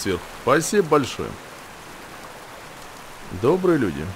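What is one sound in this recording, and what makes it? Water pours down in a stream and splashes into a pool.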